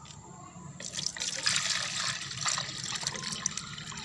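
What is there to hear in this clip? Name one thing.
Water pours from a bucket into a plastic dipper.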